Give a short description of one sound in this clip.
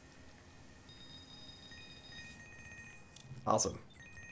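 Coins jingle with bright chimes.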